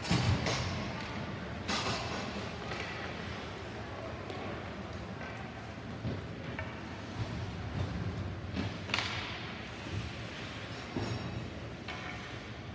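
Sounds echo around a large, hard-walled arena.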